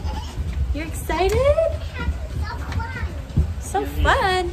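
A small child babbles and squeals.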